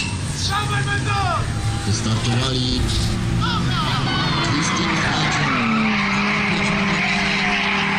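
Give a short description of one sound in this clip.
Bicycle tyres roll over a dirt track.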